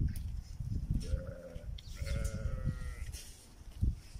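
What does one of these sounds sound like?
A sheep bleats nearby.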